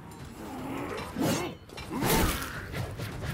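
Metal blades clash with a sharp ring.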